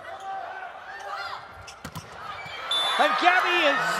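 A volleyball is struck hard with a sharp slap.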